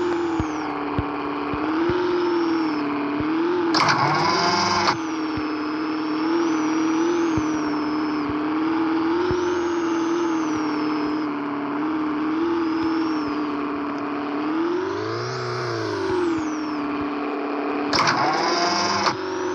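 A car engine hums steadily and revs up and down.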